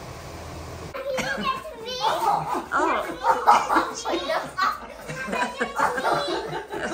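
Young girls squeal and laugh excitedly.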